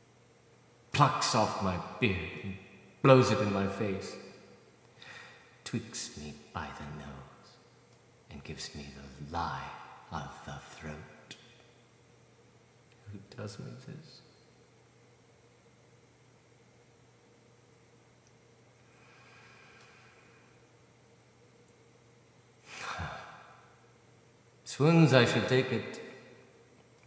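A middle-aged man speaks close up in a low, intense voice, in short bursts with pauses.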